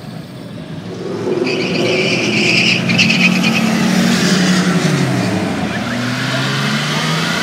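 Traffic rushes past on a busy road nearby.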